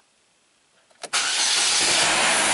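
A car engine starts and runs with a steady roar.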